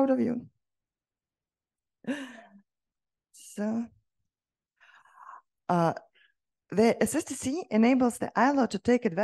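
A woman speaks through a microphone in short bursts with pauses.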